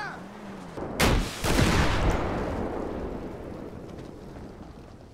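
A rocket launcher fires with a loud blast that rumbles away.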